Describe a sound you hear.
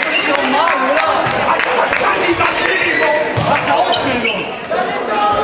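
Young men talk and shout together in a large echoing hall.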